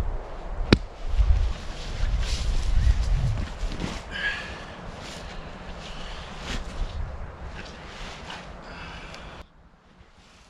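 A tarp rustles and flaps as a man handles it.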